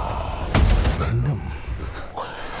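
A man shouts urgently.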